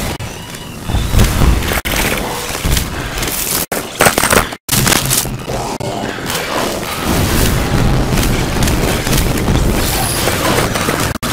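Cartoon explosions boom now and then.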